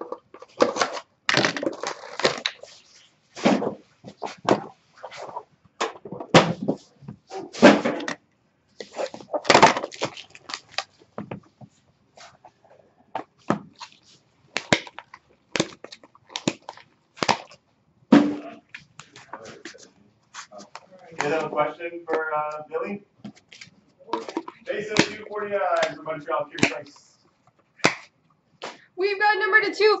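Cardboard boxes knock and slide on a table.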